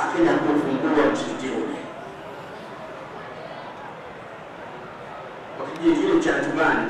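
A man chants into a microphone, heard through loudspeakers in a large echoing hall.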